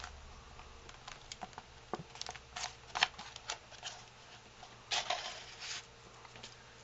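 Paper crinkles and rustles as hands fold it.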